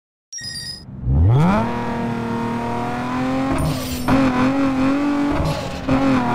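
A sports car engine starts up, revs and idles with a low rumble.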